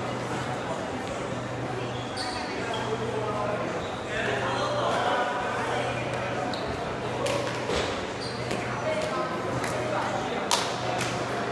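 Many voices chatter and call out in a large echoing hall.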